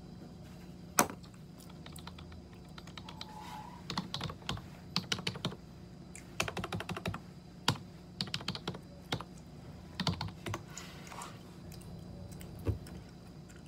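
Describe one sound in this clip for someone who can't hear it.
Small objects click and tap in a woman's hands.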